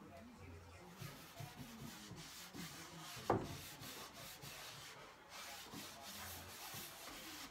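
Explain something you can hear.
A cloth rubs across wood.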